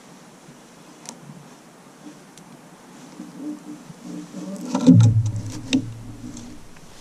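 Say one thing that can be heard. Clothing rustles and gear knocks softly.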